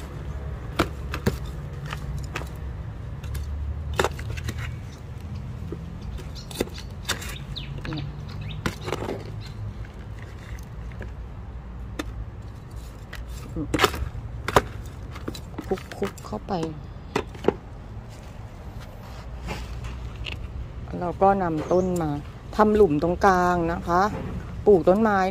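A metal trowel scrapes and digs through loose soil in a plastic pot.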